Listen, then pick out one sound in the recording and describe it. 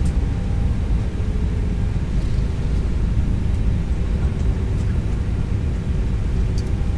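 Aircraft engines rumble steadily with a low roar.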